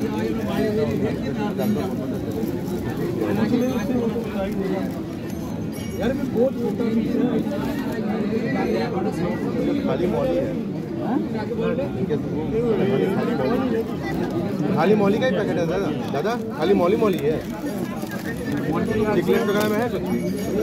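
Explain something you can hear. Plastic bags of water crinkle as hands lift them.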